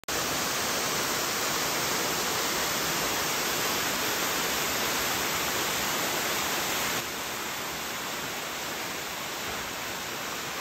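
A waterfall rushes and splashes steadily into a pool.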